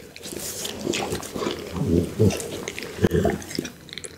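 A pit bull licks its lips close to a microphone.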